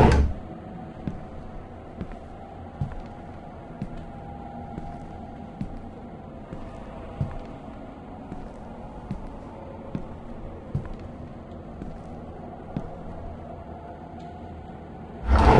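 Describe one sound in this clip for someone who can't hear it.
Footsteps thump steadily on soft ground.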